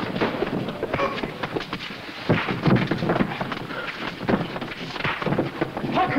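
Men scuffle and grapple with thuds and bumps.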